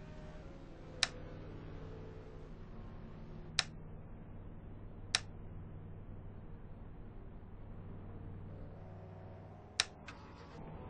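Short sharp clicks sound a few times as buttons are pressed.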